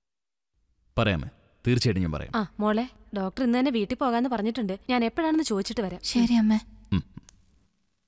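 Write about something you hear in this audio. A woman speaks with feeling, close by.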